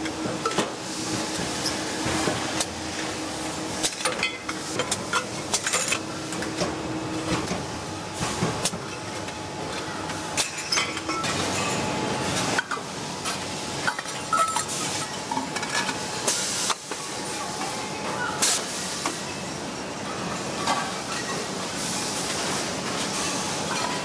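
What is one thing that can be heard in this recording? A machine cuts into a spinning metal cylinder with a grinding hiss.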